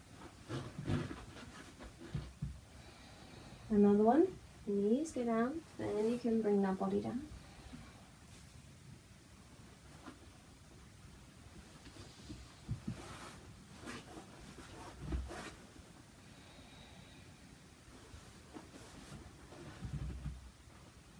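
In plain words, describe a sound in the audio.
A person shifts on a floor mat with soft thumps and rustles.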